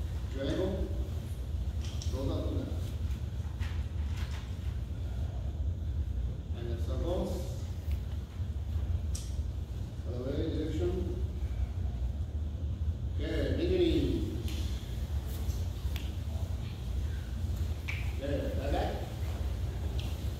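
A man calls out short commands at steady intervals in a large echoing hall.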